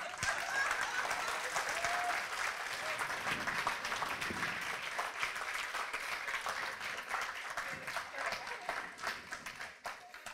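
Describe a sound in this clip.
A crowd laughs heartily.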